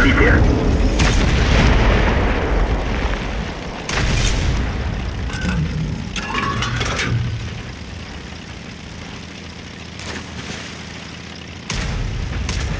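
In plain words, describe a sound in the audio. A tank cannon fires with a sharp boom.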